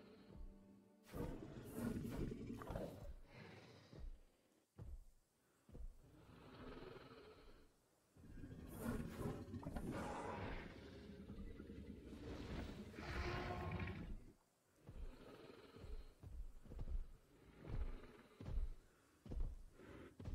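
A large beast growls and snarls.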